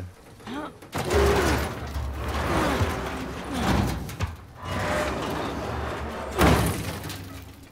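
A large metal door slides open with a heavy scraping rumble.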